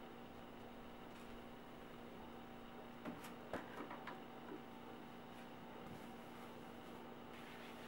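Footsteps thud softly on carpet.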